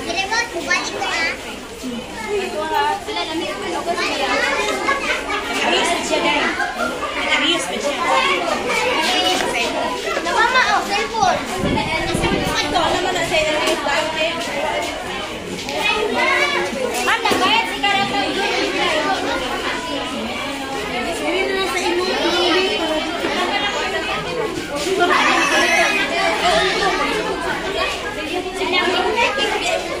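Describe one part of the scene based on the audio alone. Many children chatter and call out all around.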